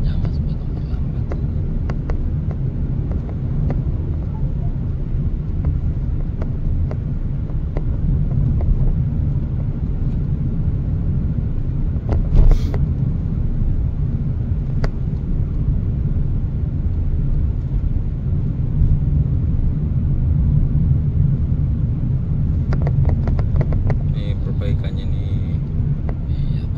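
Tyres roll over the road with a low rumble.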